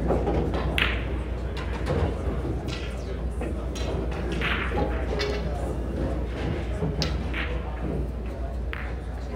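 Pool balls click sharply against each other and the table cushions.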